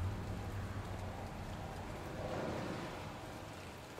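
Footsteps tread slowly on hard ground.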